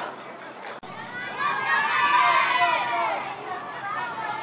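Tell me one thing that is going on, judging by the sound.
A crowd of spectators cheers loudly outdoors.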